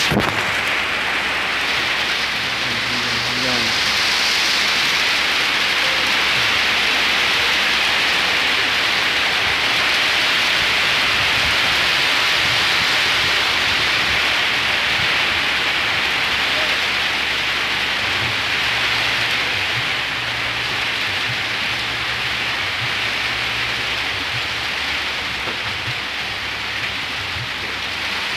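Steady rain patters on water and a roof overhead.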